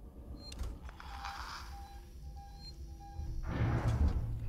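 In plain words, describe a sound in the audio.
An electronic tracker beeps in short, regular pulses.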